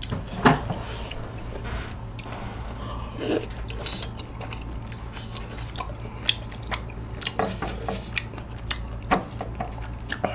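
Wooden chopsticks click against a bowl.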